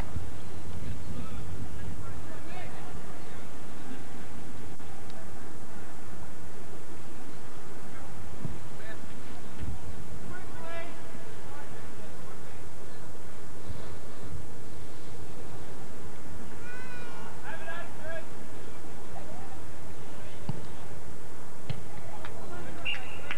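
Spectators talk quietly outdoors.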